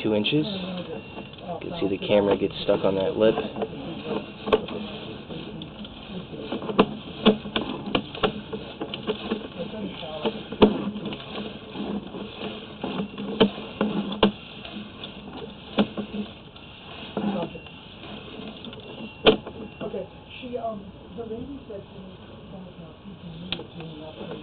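A probe knocks and scrapes along the inside of a pipe.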